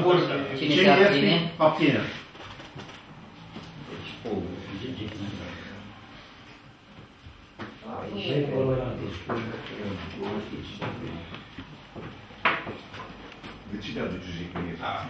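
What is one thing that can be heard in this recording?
Several men talk in turn, heard close with some room echo.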